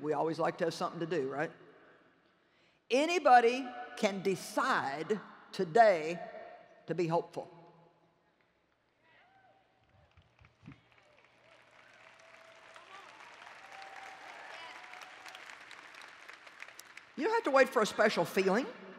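A middle-aged woman speaks with animation through a microphone.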